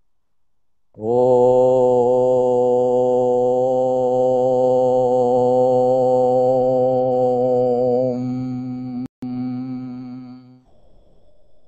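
An elderly man chants a long, steady tone close to a microphone.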